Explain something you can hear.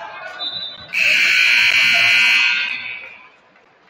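A referee's whistle blows a long blast.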